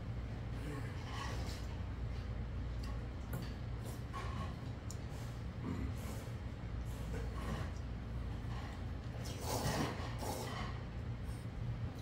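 An elderly man slurps noodles loudly.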